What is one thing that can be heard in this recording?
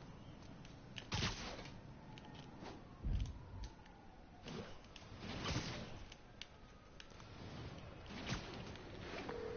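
Quick whooshing rushes of air come and go as something swings through the air.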